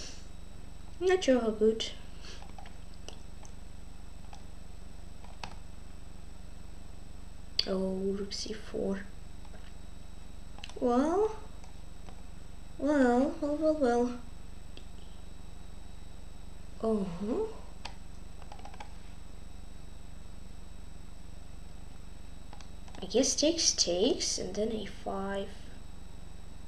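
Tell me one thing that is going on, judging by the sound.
A boy speaks calmly in short bursts into a nearby microphone.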